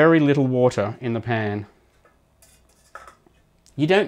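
A metal steamer basket clanks into a pot.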